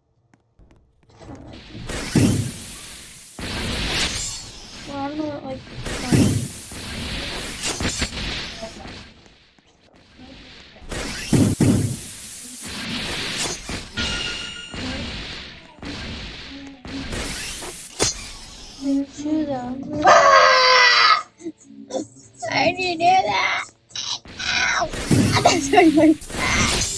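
Gas jets hiss and whoosh in short bursts.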